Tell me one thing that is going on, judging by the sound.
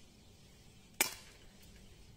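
A pistol fires a single sharp shot outdoors.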